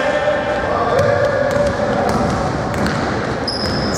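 A basketball bounces on a hard wooden floor in a large echoing hall.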